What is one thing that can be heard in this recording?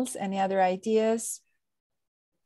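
A woman speaks briefly and warmly over an online call.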